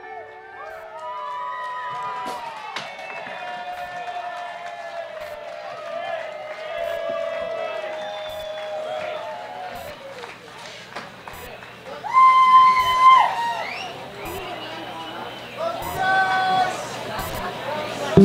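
An electric guitar plays a bending, wailing solo through loud amplifiers.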